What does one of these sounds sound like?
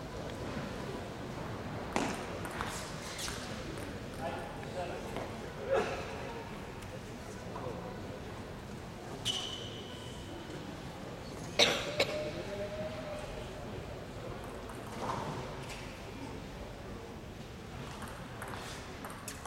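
An audience murmurs quietly in a large echoing hall.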